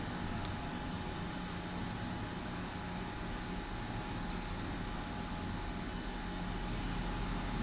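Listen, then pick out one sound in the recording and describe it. Beer fizzes softly in a glass.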